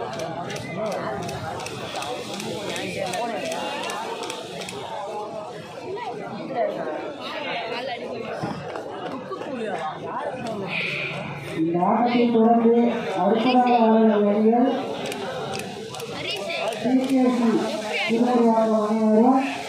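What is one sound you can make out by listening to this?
A crowd of men chatters outdoors.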